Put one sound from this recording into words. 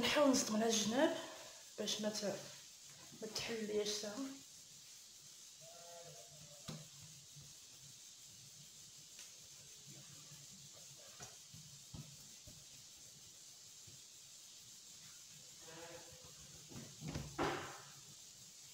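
Hands softly pat and press dough on a table.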